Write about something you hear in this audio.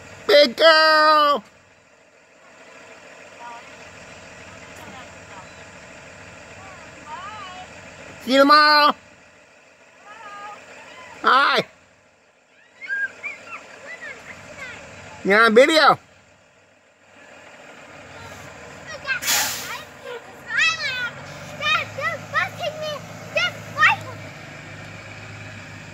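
A school bus engine idles nearby.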